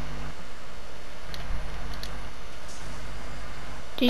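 A treasure chest hums and jingles as it opens.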